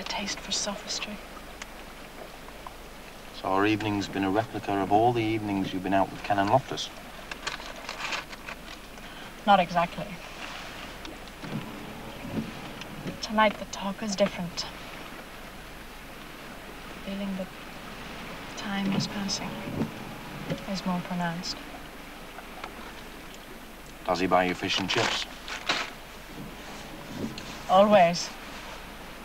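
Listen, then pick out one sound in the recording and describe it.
A man talks quietly and close by.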